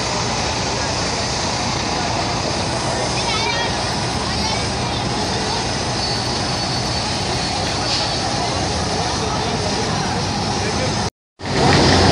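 A crowd chatters outdoors in a busy street.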